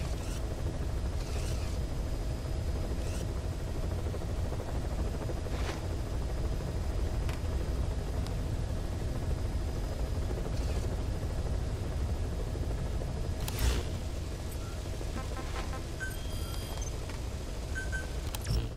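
A helicopter engine drones steadily from inside the cabin.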